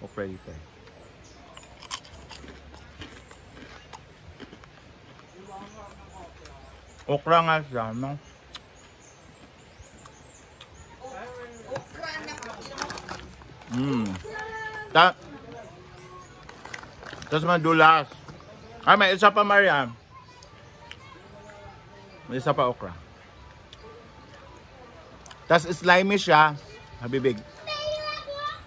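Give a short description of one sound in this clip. A young man chews and crunches food.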